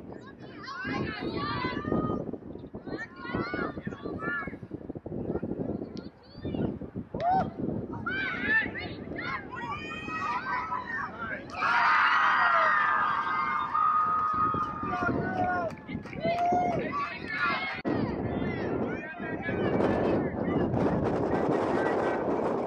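Spectators shout and cheer from the sidelines in the open air.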